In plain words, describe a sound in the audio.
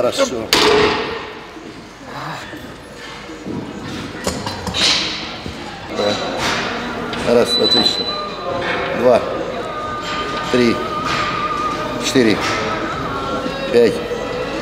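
A weight machine clanks and creaks.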